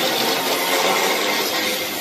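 A power tool grinds against metal.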